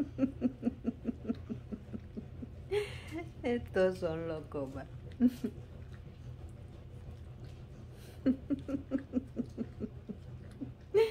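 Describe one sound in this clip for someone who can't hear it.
A dog licks and nibbles at another dog with quick wet smacking sounds.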